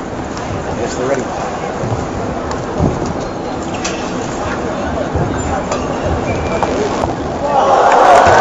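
A crowd murmurs steadily in a large echoing hall, growing louder near the end.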